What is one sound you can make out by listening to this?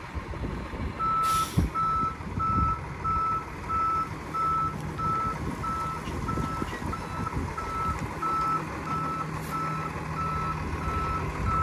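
A truck's reversing alarm beeps at a steady pace.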